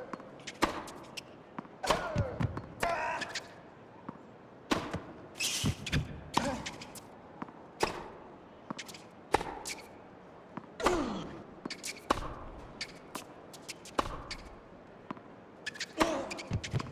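A tennis ball is struck back and forth with sharp pops of a racket.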